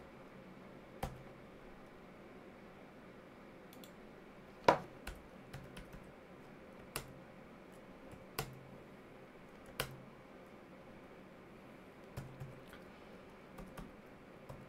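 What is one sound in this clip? Keys on a computer keyboard click and clack now and then.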